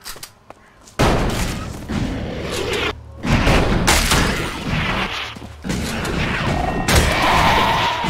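Weapons clash loudly in a fight with a beast.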